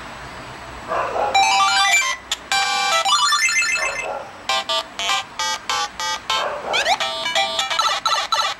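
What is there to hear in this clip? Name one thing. Beeping retro video game music plays from a small phone speaker.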